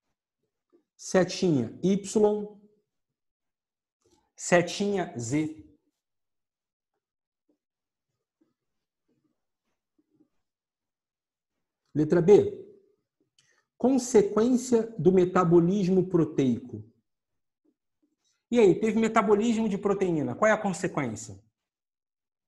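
A middle-aged man speaks close to a microphone, in short bursts with pauses.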